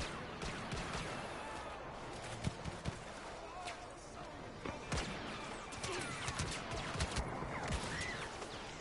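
Blaster pistol shots fire in quick bursts.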